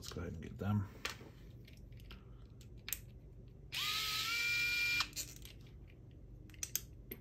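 Small metal screws click and clink as they are picked up.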